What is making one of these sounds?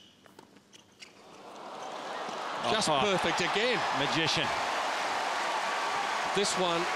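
A large crowd cheers and applauds loudly.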